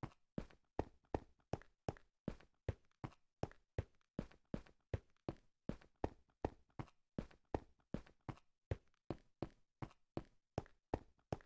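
Footsteps tread steadily and quickly on stone.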